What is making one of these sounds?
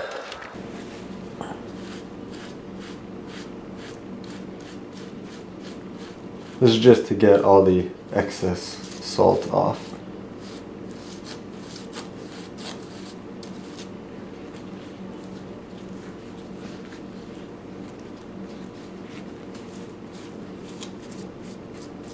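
A paper towel rustles and crinkles close by.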